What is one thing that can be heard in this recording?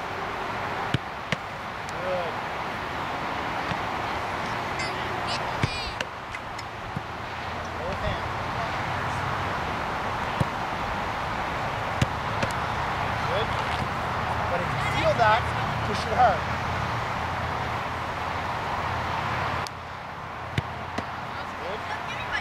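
A soccer ball is kicked with a dull thud.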